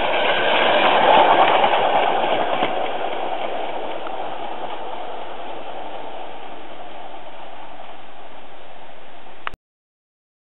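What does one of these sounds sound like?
A small steam locomotive hisses and puffs as it pulls away and fades into the distance.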